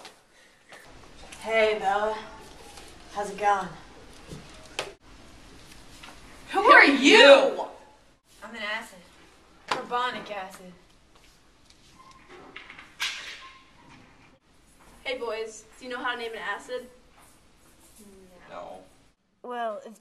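Teenage girls talk with animation close by.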